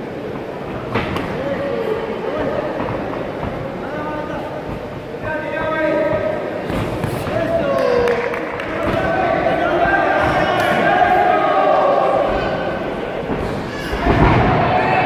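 Gloves thud against a body with punches and kicks.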